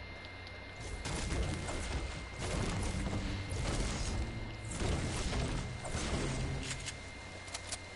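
A pickaxe strikes wood again and again.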